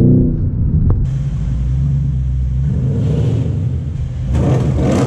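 A V8 car engine rumbles as the car rolls slowly, echoing in an underground car park.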